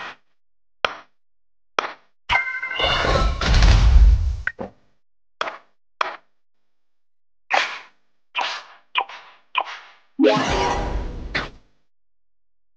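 Short soft clicks sound as menu buttons are tapped.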